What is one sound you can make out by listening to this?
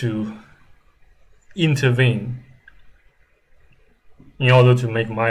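A young man speaks calmly and close into a microphone, in short bursts with pauses.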